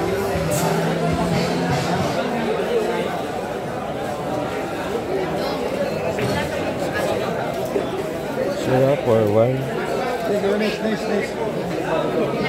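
A crowd of young men chatters and calls out nearby.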